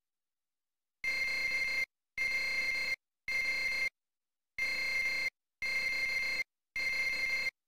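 A computer terminal chatters in short steady bursts as text prints out.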